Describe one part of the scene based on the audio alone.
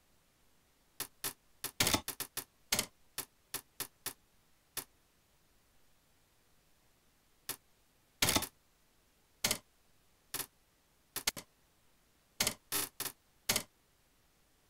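Short sharp menu clicks tick again and again.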